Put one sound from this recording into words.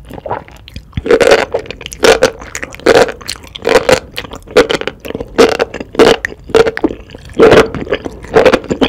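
A woman slurps noodles loudly and wetly, close to a microphone.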